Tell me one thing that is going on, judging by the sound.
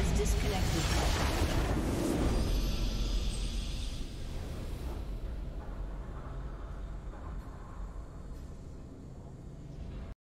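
A triumphant fanfare swells as the game ends.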